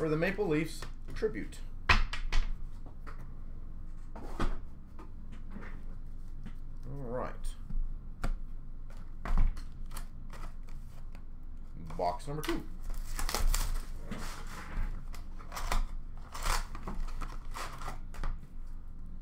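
Cardboard boxes knock and rustle as hands handle them nearby.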